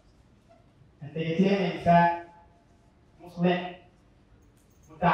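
A young man speaks with animation into a microphone, heard through loudspeakers in a large room.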